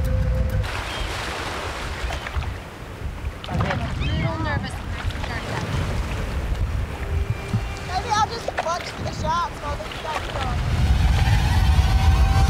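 Water laps and splashes around people wading.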